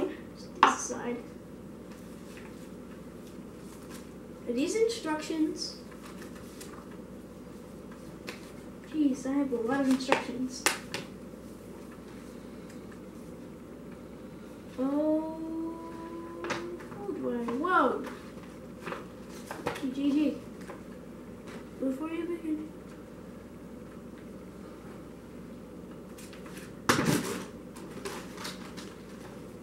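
Paper and cardboard rustle and crinkle as a boy handles them.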